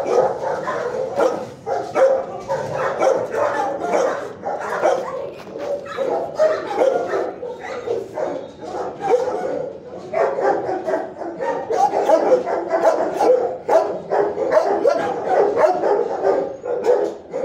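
Dogs bark loudly and continuously in an echoing room.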